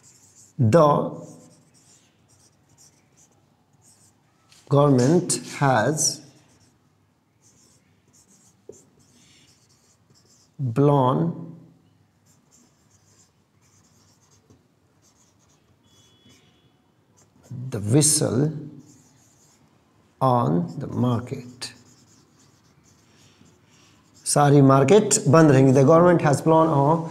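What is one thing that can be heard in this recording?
A young man speaks calmly and clearly, close by, in short phrases with pauses.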